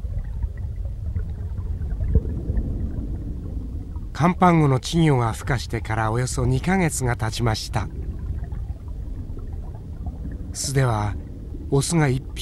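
A low, muffled underwater rumble goes on steadily.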